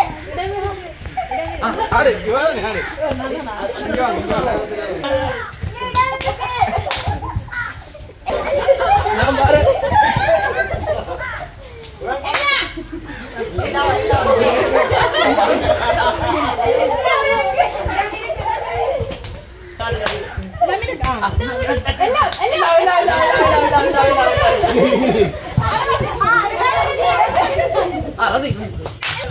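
A group of men and women chatter and laugh together loudly.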